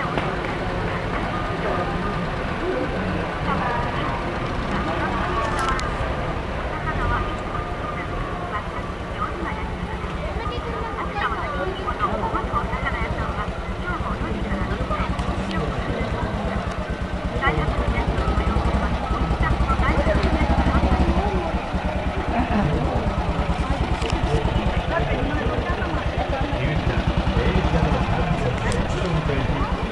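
A crowd of people chatters along the street.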